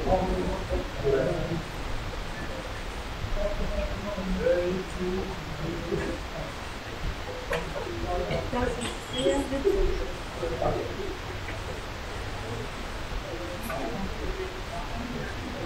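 Distant voices of travellers murmur in a large echoing hall.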